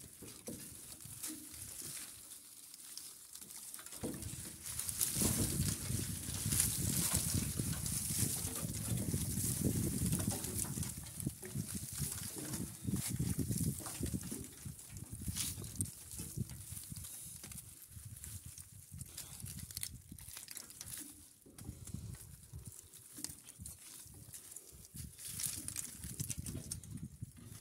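A machine rumbles and rattles as it crushes dry husks.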